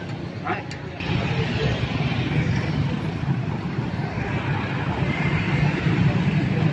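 Motorbike engines hum and traffic rolls past nearby.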